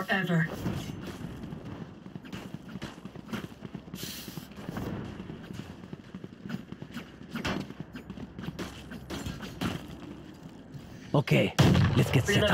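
Quick footsteps patter on hard ground.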